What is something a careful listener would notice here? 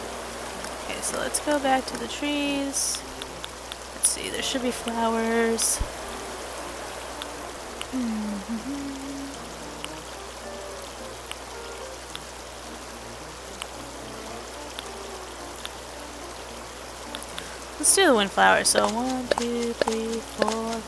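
A woman talks casually into a close microphone.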